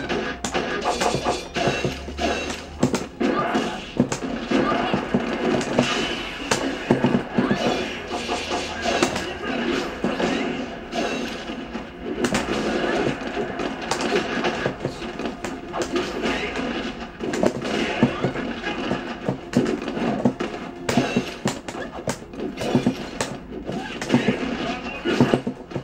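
Punches and kicks thud from a television speaker.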